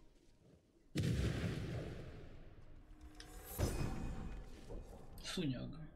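A deep whooshing burst swells and fades.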